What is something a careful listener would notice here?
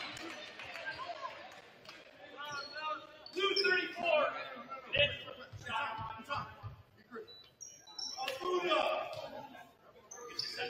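Players shout and call out across an echoing gym.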